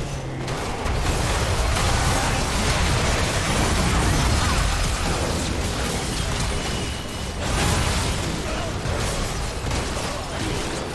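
Video game spells blast and explosions crackle in a busy fight.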